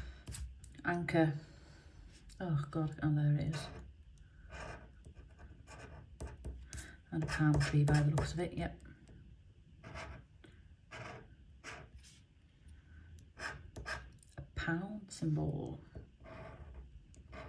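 A metal tool scrapes and scratches across a card.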